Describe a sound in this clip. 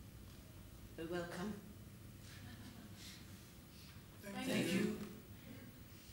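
A young man speaks out loud.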